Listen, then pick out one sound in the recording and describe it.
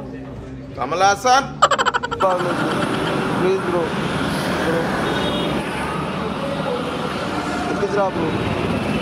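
Street traffic hums in the background outdoors.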